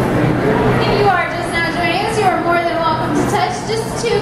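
A young child babbles excitedly close by.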